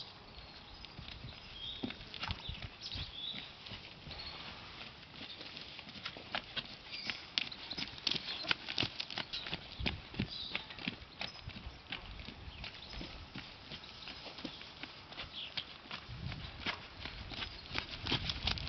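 A horse's hooves thud softly on sand in a steady trotting rhythm.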